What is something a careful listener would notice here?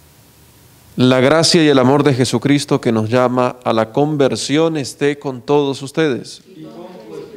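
A man sings a chant loudly through a microphone, in an echoing room.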